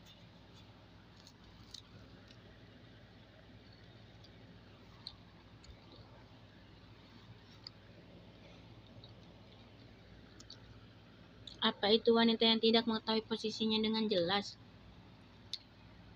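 A woman slurps noodles close by.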